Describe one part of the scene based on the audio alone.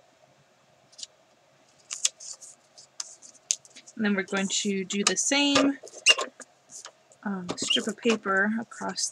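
Paper strips rustle and slide on a hard surface.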